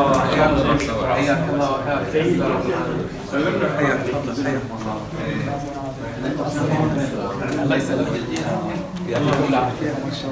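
Several adults talk excitedly over one another nearby.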